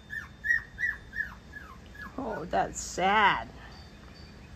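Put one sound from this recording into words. Puppies whimper and yelp in short, high cries.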